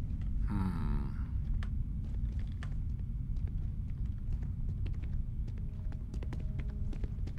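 Footsteps crunch on gravelly ground.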